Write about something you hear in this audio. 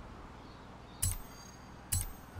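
A game menu gives two short chimes.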